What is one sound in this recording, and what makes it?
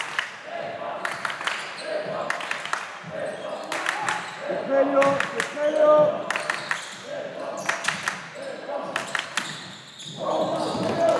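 A basketball bounces on a hard court with echoing thuds.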